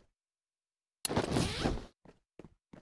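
A wooden crate is opened with a short clatter.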